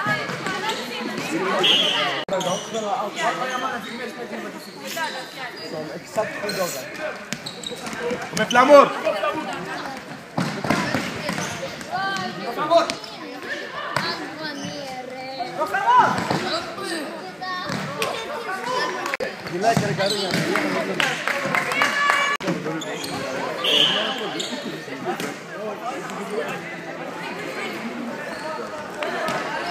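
A futsal ball is kicked and bounces on a wooden floor.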